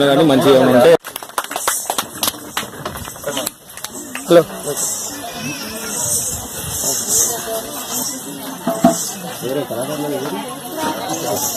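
A man speaks with animation amid a small crowd.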